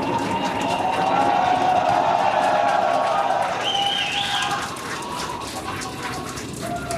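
A rocket engine roars steadily.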